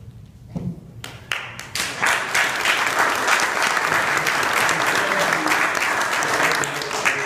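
A small audience claps in a room.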